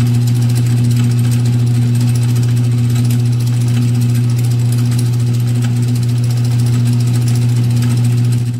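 A drill bit grinds into spinning metal with faint scraping ticks.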